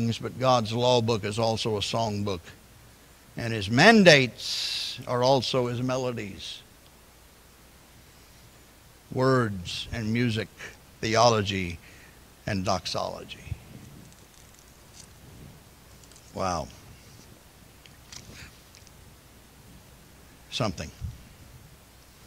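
An elderly man speaks slowly and deliberately through a microphone in a large echoing hall.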